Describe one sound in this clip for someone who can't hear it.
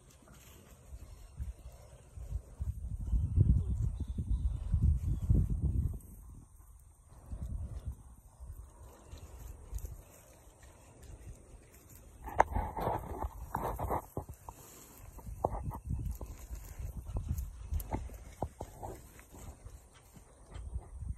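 Puppies scrabble and scratch on dry dirt.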